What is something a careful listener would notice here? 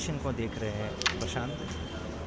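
A striker sharply clicks against pieces on a wooden board.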